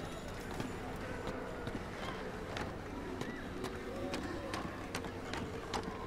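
Hands and feet knock on a wooden ladder while climbing.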